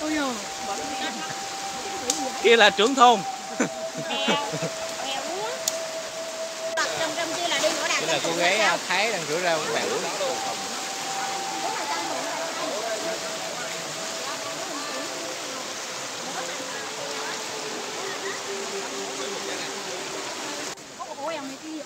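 A shallow stream rushes and gurgles over rocks.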